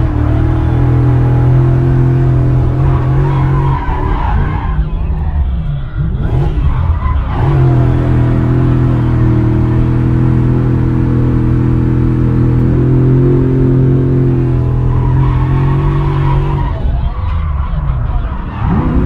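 A car engine drones steadily, heard from inside the car.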